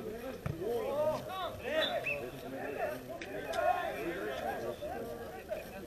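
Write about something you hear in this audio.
Men call out to each other across an open sports ground.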